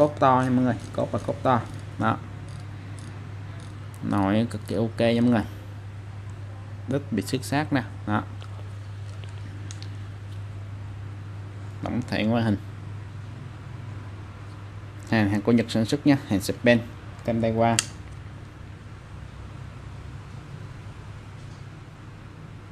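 A fishing reel clicks and whirs softly as it is handled.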